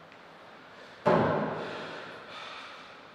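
A table tennis paddle is dropped onto a table with a loud clatter that echoes through a large hall.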